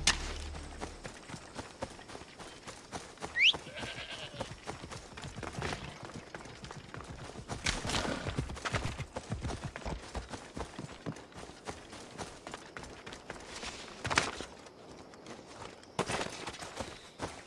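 Footsteps crunch through dry grass and over rocks.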